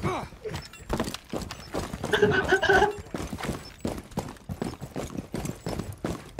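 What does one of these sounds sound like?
Boots thud in quick footsteps on pavement.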